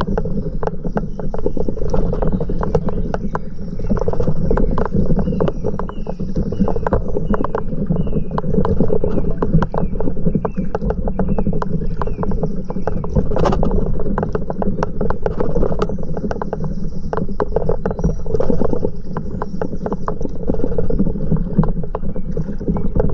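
River water laps and splashes close by.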